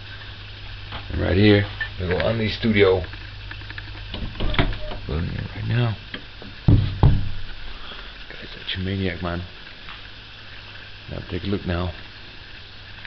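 A man talks casually, close up.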